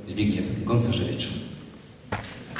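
A choir sings a final chord in a hall.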